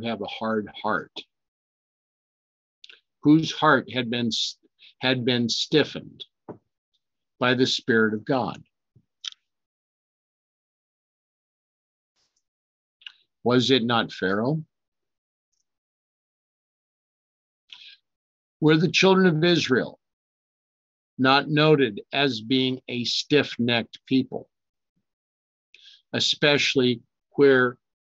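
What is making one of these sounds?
A man speaks calmly and closely into a microphone, in short phrases with long pauses.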